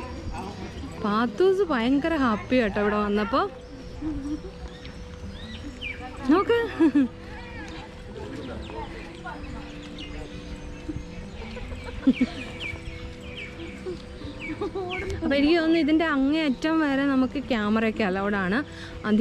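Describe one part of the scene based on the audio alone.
A woman talks and coos in a lively, sing-song voice close by.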